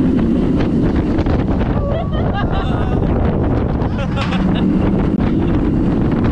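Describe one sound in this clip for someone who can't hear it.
A roller coaster rattles and roars along its track.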